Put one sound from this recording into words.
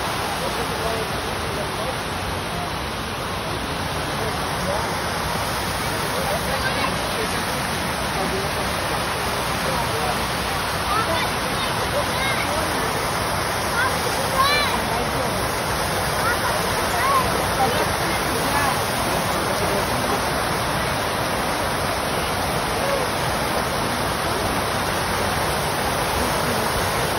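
Fountains splash and gush steadily outdoors.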